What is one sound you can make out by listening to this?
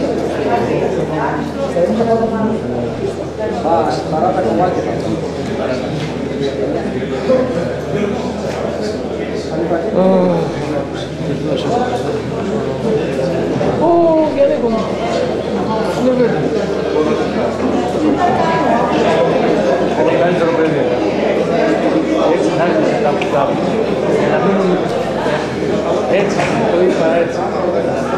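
Several men and women talk over one another in a large, echoing room.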